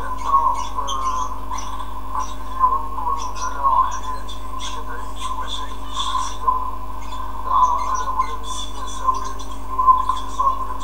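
A man speaks calmly through an online call, heard from a loudspeaker.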